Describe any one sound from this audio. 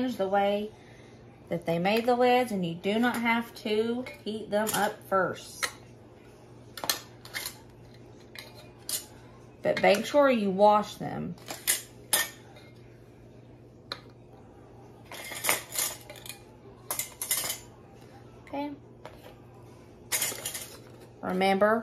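Metal jar lids clink and scrape as they are put on and screwed down.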